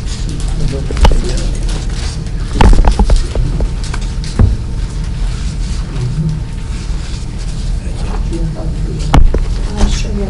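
Knocks and thumps sound on a table.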